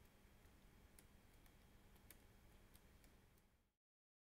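A hand taps and brushes against a device close by.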